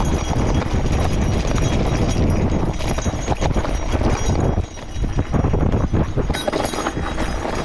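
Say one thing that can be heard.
Wind rumbles loudly past close by.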